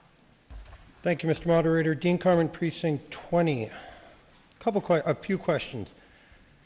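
A man speaks into a microphone, heard through a loudspeaker in a large hall.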